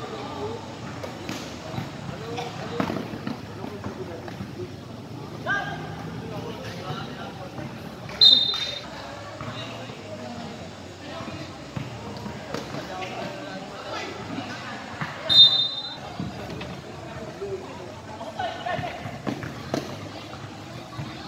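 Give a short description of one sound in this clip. Young players shout to each other across a large echoing court.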